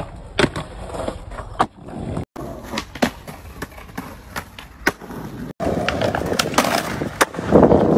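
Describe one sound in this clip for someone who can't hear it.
Skateboard trucks grind along a ledge.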